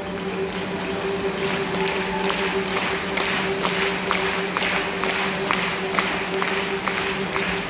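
Loud music with a steady thumping beat plays through loudspeakers in a large echoing arena.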